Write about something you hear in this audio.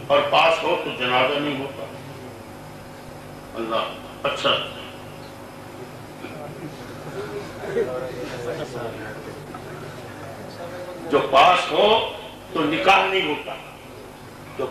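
An elderly man speaks into a microphone with animation, in bursts with pauses, heard through a loudspeaker.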